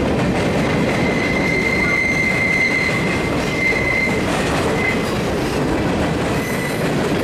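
Steel wheels squeal faintly against the rails.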